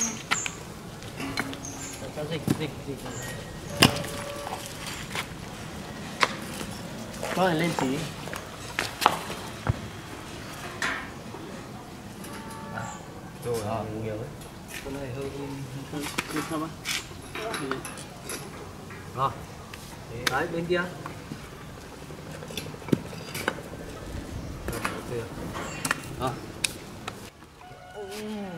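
Young men talk with each other nearby, outdoors.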